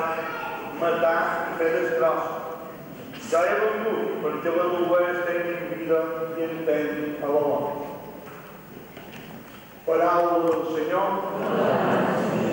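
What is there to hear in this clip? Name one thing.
A middle-aged man chants into a microphone in a large echoing church.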